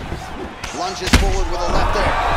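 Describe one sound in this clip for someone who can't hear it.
A heavy punch lands with a loud thud.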